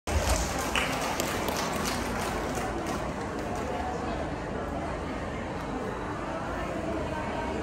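Music plays loudly through loudspeakers in a large hall.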